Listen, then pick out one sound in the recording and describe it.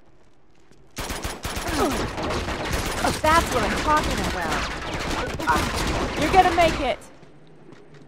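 Rapid gunshots crack in quick bursts.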